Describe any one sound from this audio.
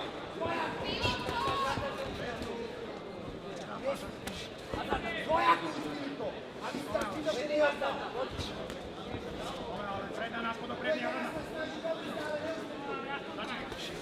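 Boxing gloves thud against a body.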